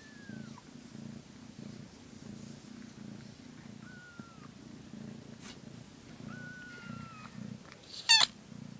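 A cat purrs steadily close by.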